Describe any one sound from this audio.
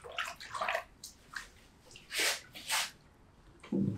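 Water splashes as feet are lifted from a basin.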